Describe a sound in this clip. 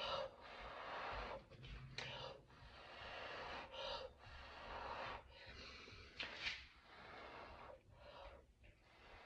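A person blows air in short puffs close by.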